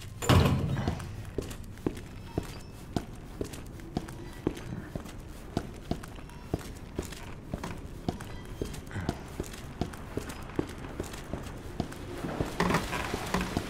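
Footsteps tap at an even pace on a hard floor.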